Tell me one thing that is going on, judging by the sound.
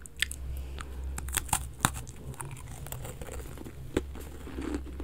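A young woman chews crunchy cookies close to a microphone.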